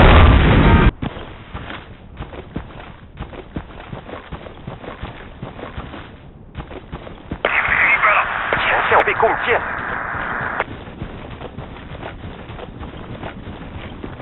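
Footsteps run steadily over hard ground.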